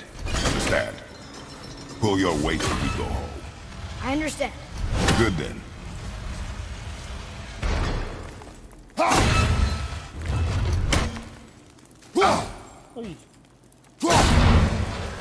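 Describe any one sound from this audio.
An axe strikes with a heavy thud.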